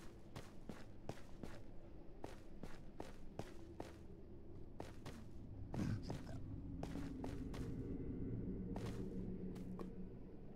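Footsteps crunch steadily on loose ground.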